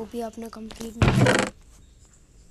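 A wooden chest creaks open in a video game.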